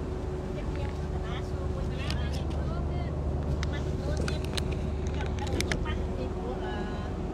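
A car drives along at speed with a steady low rumble heard from inside.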